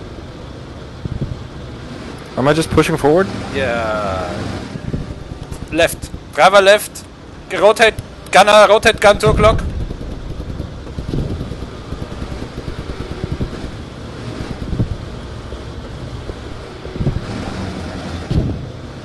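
A heavy engine rumbles low and steadily.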